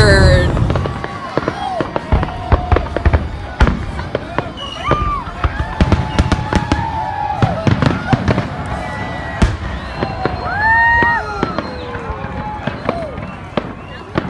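Fireworks whistle as they rise.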